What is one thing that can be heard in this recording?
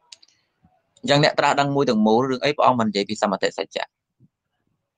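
A man speaks calmly and clearly into a microphone.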